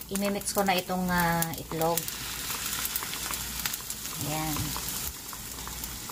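Beaten egg pours into a pan.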